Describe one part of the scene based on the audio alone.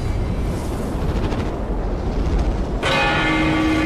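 A bullet whooshes through the air.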